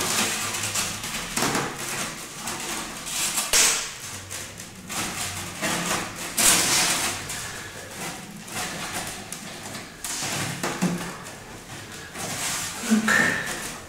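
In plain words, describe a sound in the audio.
Stiff paper or card rustles and crinkles as a man handles it.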